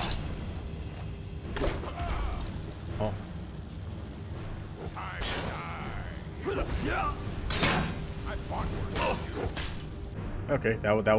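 Flames roar and crackle in bursts.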